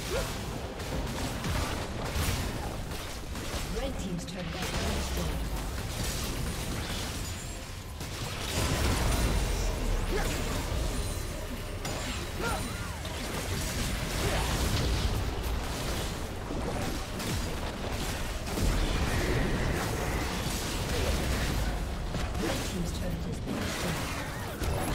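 Game spell effects and hits crackle and boom in a fast fight.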